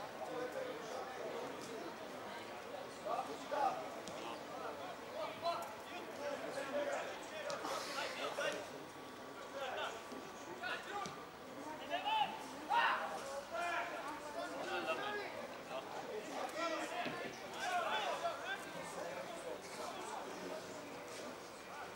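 Men shout to one another across an open outdoor field.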